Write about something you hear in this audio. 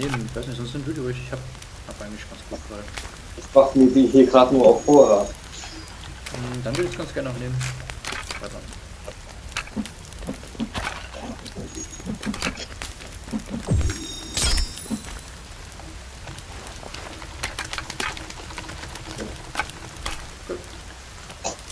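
A small fire crackles and pops.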